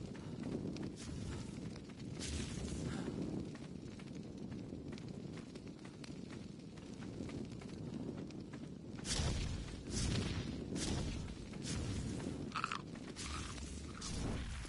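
A torch fire crackles and roars close by.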